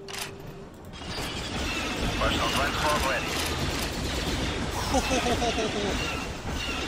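Laser blasts fire rapidly in a battle.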